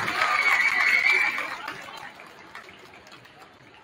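A crowd cheers and applauds in a large echoing gym, then fades.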